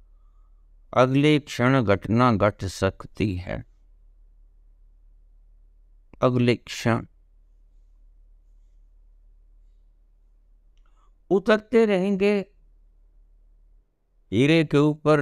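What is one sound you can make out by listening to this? An elderly man speaks calmly close to the microphone, in short bursts with pauses.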